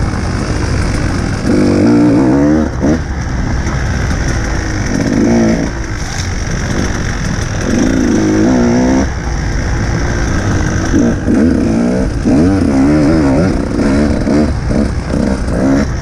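Bicycle tyres rattle and crunch over a bumpy dirt trail.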